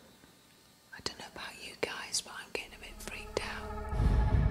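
A woman speaks in a hushed, nervous voice close by.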